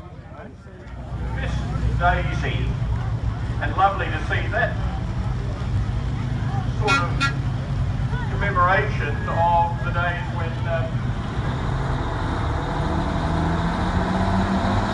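An old truck engine rumbles as the truck drives slowly past.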